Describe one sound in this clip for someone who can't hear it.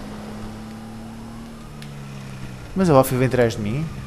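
A car engine hums as the car drives.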